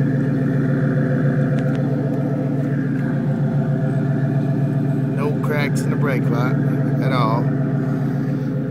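A car engine idles with a steady droning hum.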